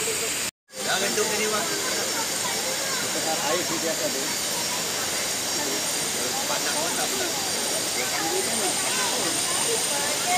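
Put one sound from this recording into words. Young children chatter and call out nearby outdoors.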